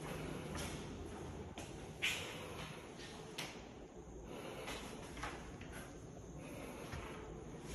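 A door swings open and knocks softly.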